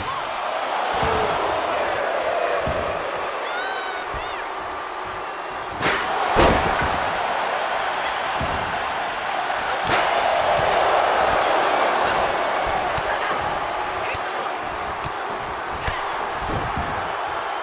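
A wrestler thuds onto the ring mat.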